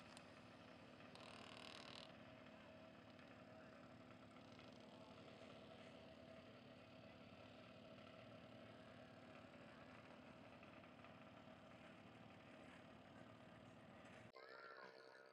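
A motorcycle engine drones steadily close by.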